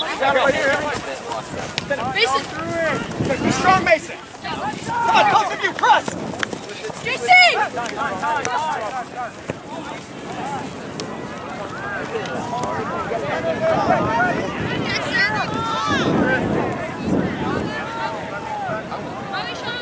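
Young players shout to each other outdoors.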